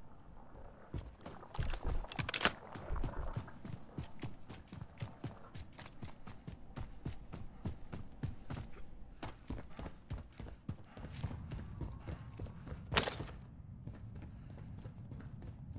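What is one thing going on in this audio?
Quick footsteps run over ground and concrete.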